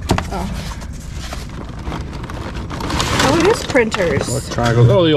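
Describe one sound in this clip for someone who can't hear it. Cables rustle and scrape inside a cardboard box.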